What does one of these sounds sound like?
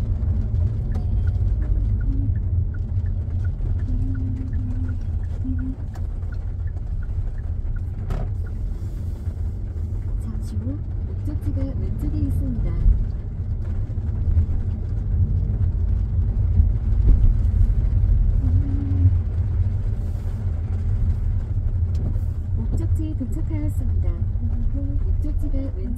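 A car engine and tyres rumble low and steady from inside the car.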